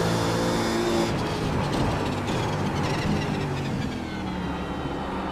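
A racing car engine drops in pitch as the car slows for a corner.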